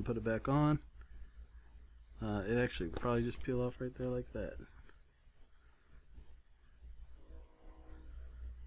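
Metal tweezers tap and scrape softly on a circuit board.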